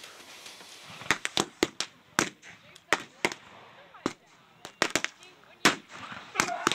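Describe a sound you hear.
Muskets fire in sharp, repeated shots outdoors.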